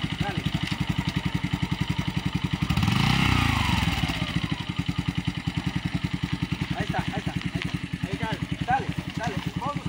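A motorcycle engine idles with a steady, rapid putter close by.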